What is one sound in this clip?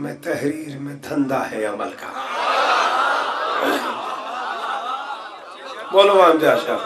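A man speaks passionately into a microphone, his voice heard over a loudspeaker.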